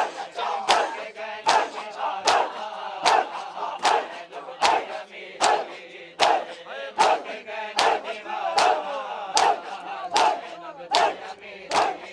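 A crowd of men chant loudly in unison.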